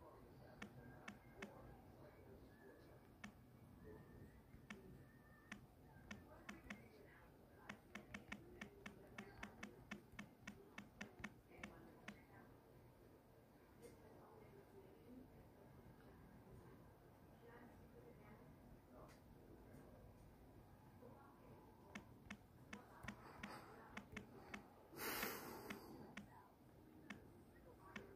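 Phone keys tap with quick, light clicks.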